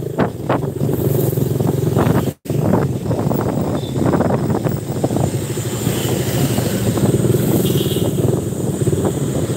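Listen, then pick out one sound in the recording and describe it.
A motorcycle engine hums steadily close by while riding.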